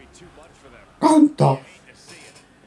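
A young man shouts out loudly.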